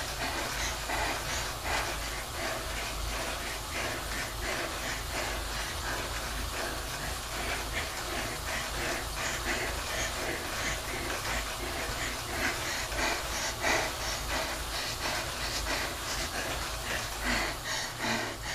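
A bike trainer whirs steadily under pedalling.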